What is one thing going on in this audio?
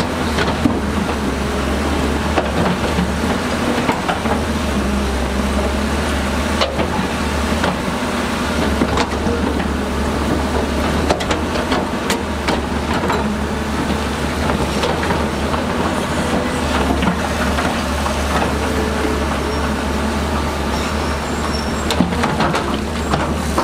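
Rocks and mud clatter and knock in an excavator bucket.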